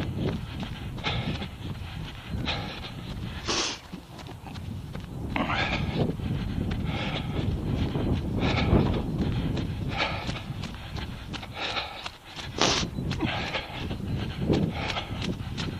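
Running footsteps crunch and splash on a wet, snowy path.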